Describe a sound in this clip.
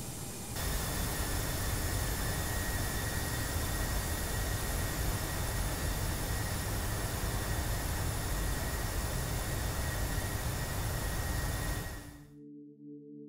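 Jet engines roar steadily as an airliner flies.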